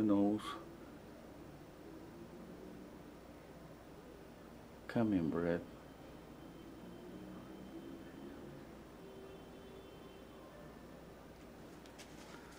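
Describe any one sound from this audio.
A paintbrush softly dabs and strokes paint on a canvas.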